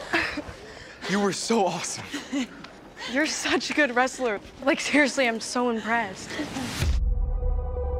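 Young people talk and laugh nearby in a large echoing hall.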